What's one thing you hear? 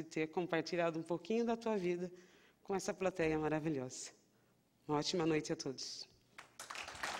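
A woman speaks into a microphone in a calm, steady voice.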